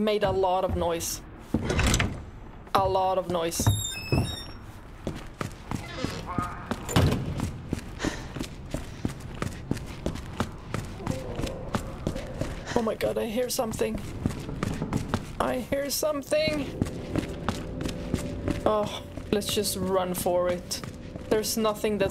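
A young woman talks into a microphone, close up, with animation.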